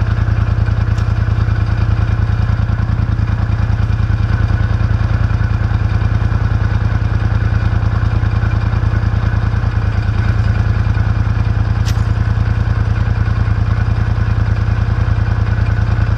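A heavy bag thuds onto a metal frame.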